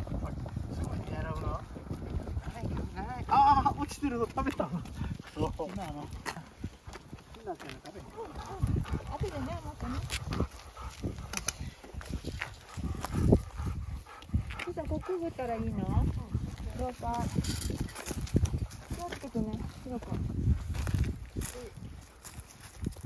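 A man and a woman talk casually nearby outdoors.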